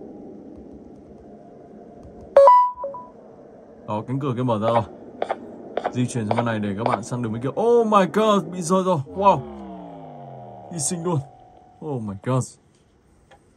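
Electronic game sounds play through a small speaker.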